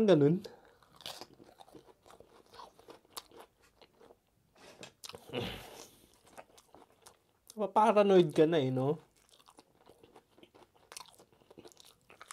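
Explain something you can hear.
Crisp tortilla chips rustle and crackle as they are handled.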